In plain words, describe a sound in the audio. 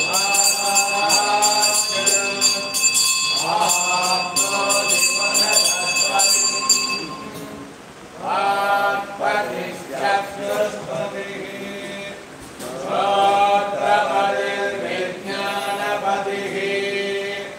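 Men chant together in a steady, rhythmic drone.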